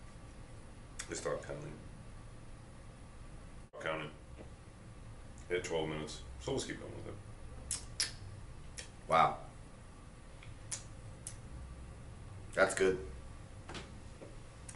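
A man speaks calmly and close by, with pauses.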